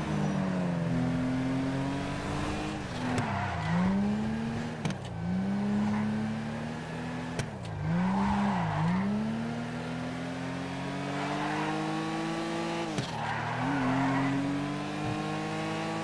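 Tyres screech on the road in turns.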